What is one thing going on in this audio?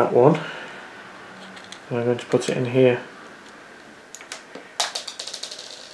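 A plastic casing clicks as it is handled.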